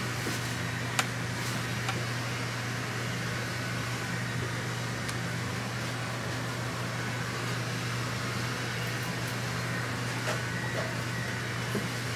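Paper rustles softly against a person's neck.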